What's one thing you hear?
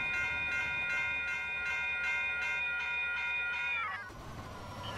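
A railway crossing bell rings rapidly and steadily.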